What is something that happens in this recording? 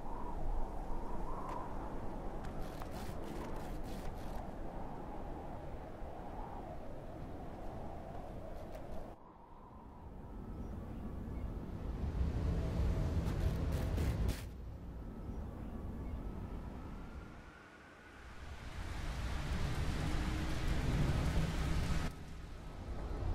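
A flying craft's engine roars and whooshes, swelling and dipping in waves.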